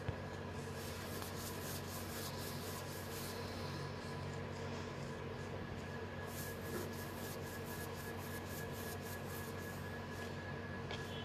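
A stiff brush scratches and dabs paint onto a rough surface.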